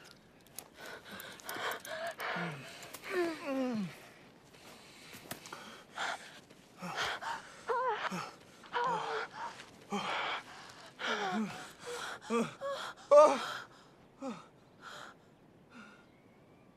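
A young woman sighs and moans softly close by.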